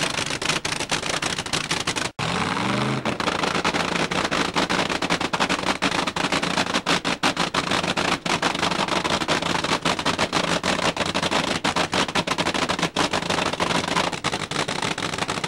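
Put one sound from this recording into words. A race car engine idles loudly with a rough, crackling rumble.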